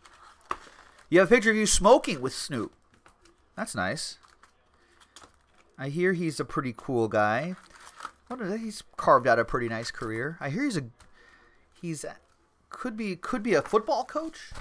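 Cardboard packs rustle and tap as they are handled.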